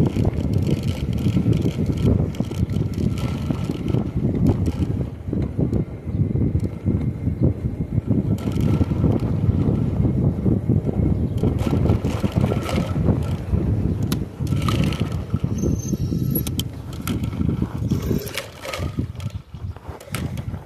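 Tyres hum on pavement as a scooter rolls along.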